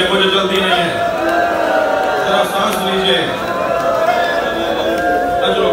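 A man recites loudly through a microphone in a large echoing hall.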